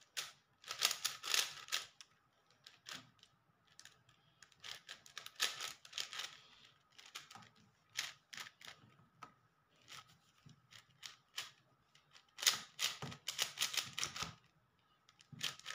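A plastic puzzle cube clicks and clatters as its layers are turned quickly.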